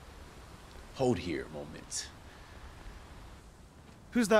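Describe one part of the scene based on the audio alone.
A young man speaks briefly and calmly into a close microphone.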